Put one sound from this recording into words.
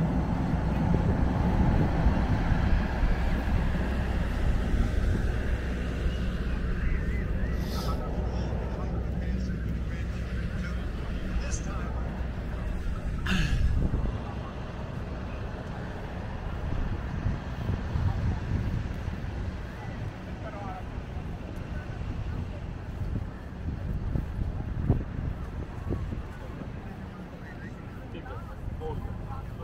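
Wind blusters across an open, outdoor space.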